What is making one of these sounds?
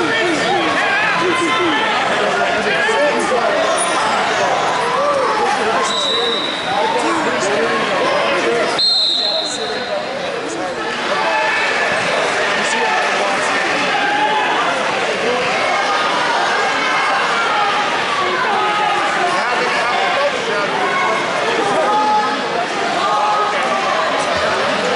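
A crowd of many voices chatters and shouts throughout a large echoing hall.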